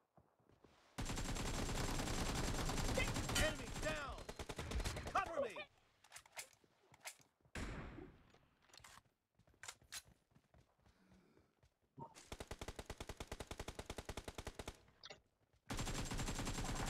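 Rapid automatic gunfire rattles in loud, fast bursts.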